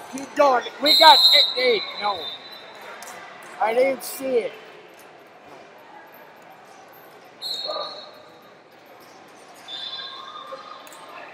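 A referee blows a whistle in short sharp blasts.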